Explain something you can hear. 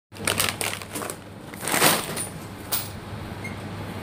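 Cardboard boxes knock and rustle as they are handled.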